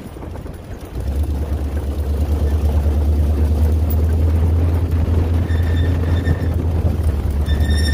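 Wind buffets outdoors with a low rumble.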